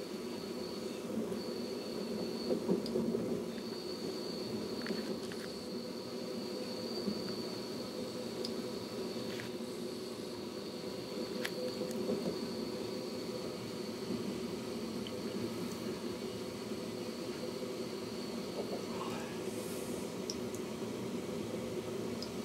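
A steady high whine hums inside a train carriage.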